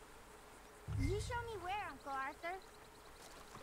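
A young boy speaks eagerly nearby.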